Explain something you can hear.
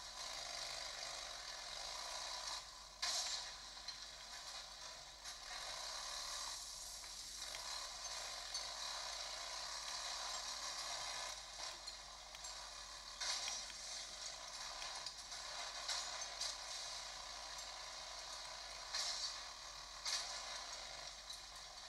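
A motorcycle engine drones steadily through small, tinny speakers.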